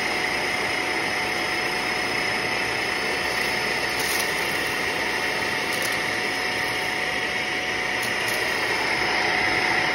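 Debris rattles inside a vacuum cleaner's canister.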